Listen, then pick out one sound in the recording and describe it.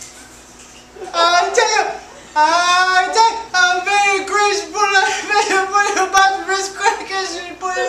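A man sings loudly and forcefully.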